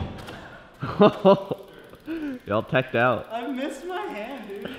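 A young man talks and laughs with animation, close by.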